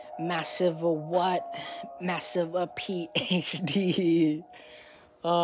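A young man talks with animation close to the microphone.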